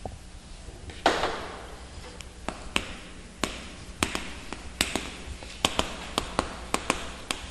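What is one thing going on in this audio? Chalk taps and scratches on a chalkboard.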